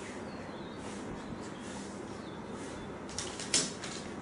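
Newspaper rustles and crinkles as it is handled.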